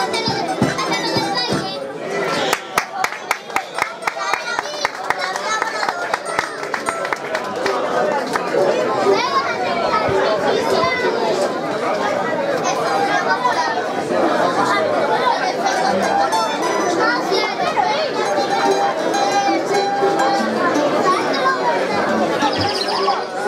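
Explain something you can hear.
An ensemble of mandolins and guitars plays a lively tune, plucking and strumming.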